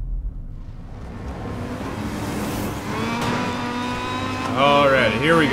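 A race car engine roars at high speed and revs up.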